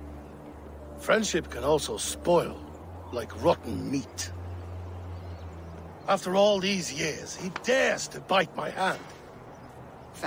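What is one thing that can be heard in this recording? A man speaks in a low, grave voice.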